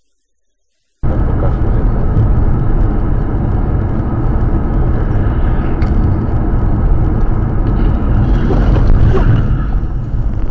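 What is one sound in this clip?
A car drives along a highway with a steady rumble of tyres on wet road.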